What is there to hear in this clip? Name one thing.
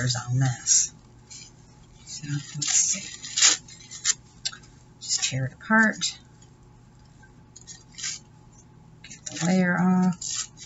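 Paper crinkles and rustles in hands up close.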